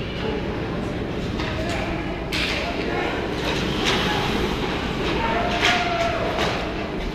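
Skates scrape and carve across the ice in a large echoing rink.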